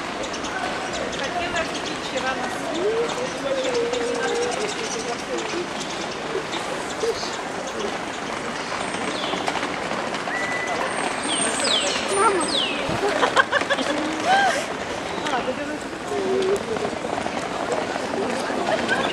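A crowd murmurs steadily in the background.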